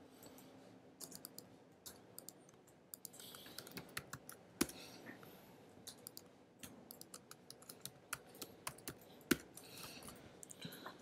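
Keys click on a keyboard in quick bursts of typing.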